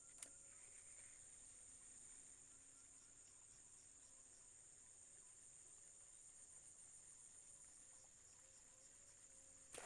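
A fishing reel ticks softly as line is wound in.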